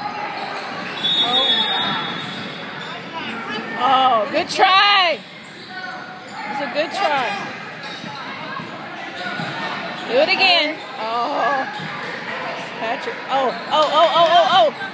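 Sneakers squeak sharply on a hard court floor in a large echoing gym.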